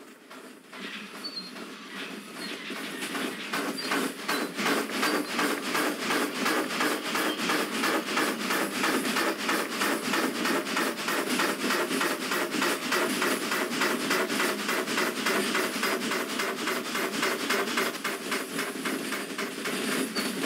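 A steam locomotive chuffs in a steady rhythm that gradually quickens and grows louder.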